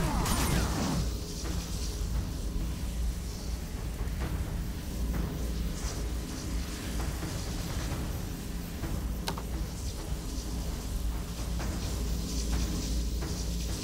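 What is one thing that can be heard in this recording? Weapons clash in a fierce battle.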